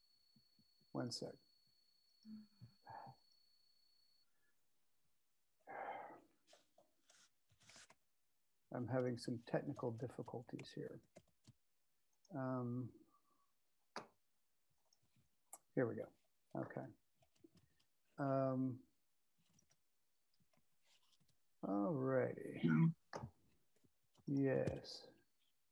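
A middle-aged man speaks calmly over an online call, in short bursts with pauses.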